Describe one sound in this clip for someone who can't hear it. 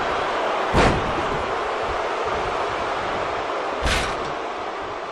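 Bodies slam heavily onto a wrestling ring mat.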